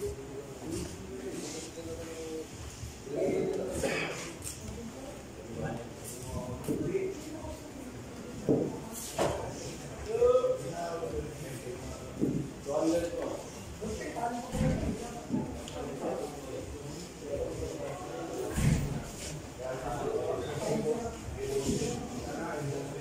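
Men talk quietly nearby.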